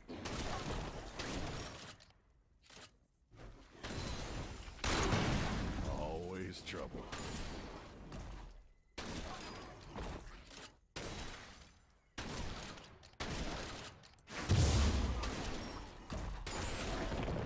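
Weapons strike and slash at creatures in quick, repeated hits.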